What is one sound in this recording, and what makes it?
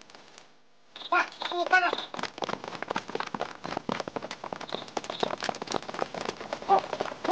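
A group of people walk quickly over pavement.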